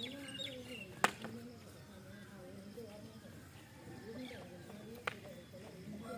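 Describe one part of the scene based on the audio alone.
A stick strikes hard dirt ground with sharp knocks.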